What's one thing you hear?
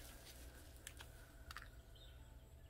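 A small plastic bottle taps and clicks against a hard surface.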